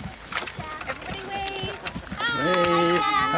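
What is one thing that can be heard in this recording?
Children and adults chatter on a passing wagon.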